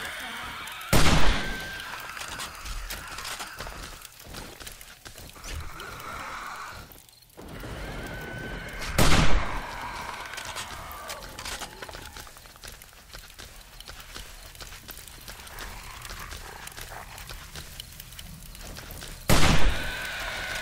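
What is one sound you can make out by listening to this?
A shotgun fires loud, booming shots.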